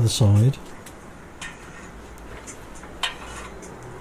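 A workbench clamp knocks and clicks as it is adjusted.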